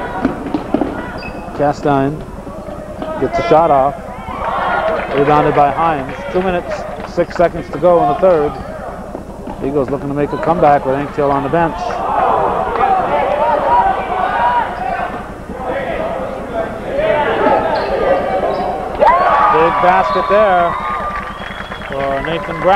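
Young men shout and call out in an echoing gym.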